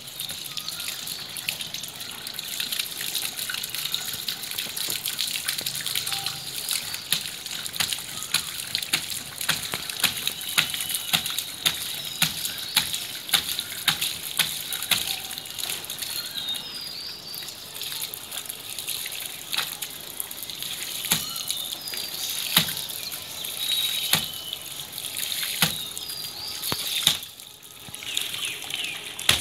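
Water trickles and splashes on a wet floor.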